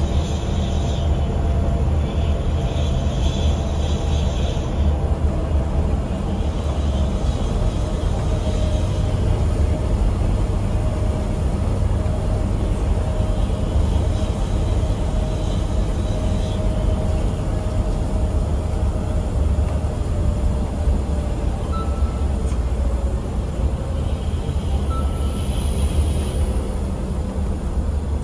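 A vehicle's engine hums with a steady low rumble.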